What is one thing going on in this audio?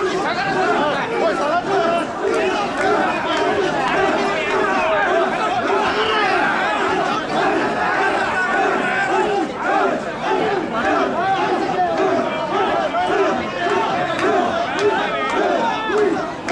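A large crowd of men chants loudly in rhythm, close by.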